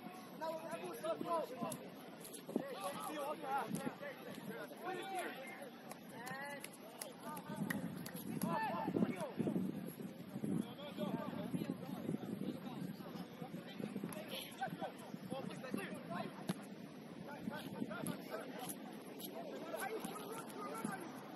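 Young players shout and call to each other across an open field, heard from a distance.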